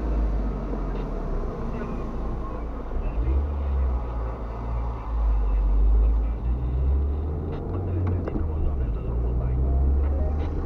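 A car drives along, its engine and road noise rumbling low inside the cabin.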